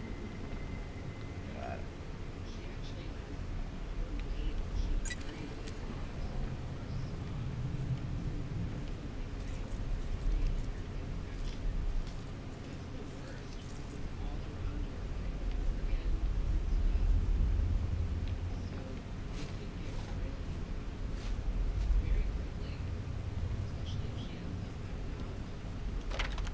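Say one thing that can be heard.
A man speaks quietly into a close microphone.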